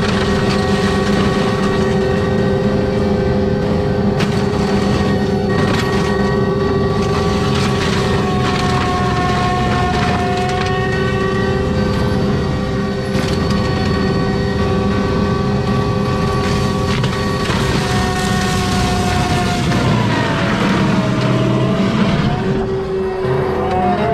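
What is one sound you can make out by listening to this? A mulcher grinds and shreds brush and wood, with sharp cracks now and then.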